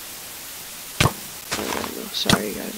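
A sword strikes a rattling skeleton with sharp hits.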